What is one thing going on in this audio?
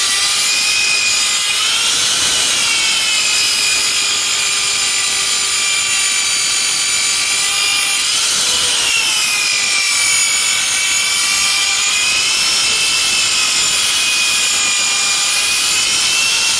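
An electric polisher whines steadily, its pitch wavering as it buffs a hard surface.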